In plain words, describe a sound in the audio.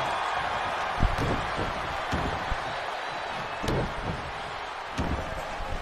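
Heavy body slams thud on a wrestling mat.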